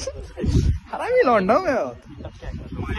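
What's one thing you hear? A young man laughs and calls out loudly.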